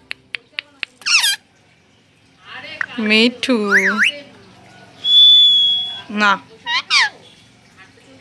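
A parrot squawks and chatters loudly up close.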